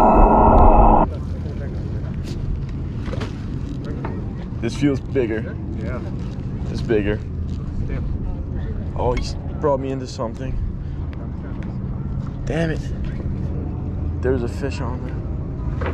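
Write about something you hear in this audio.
Small waves lap against a boat.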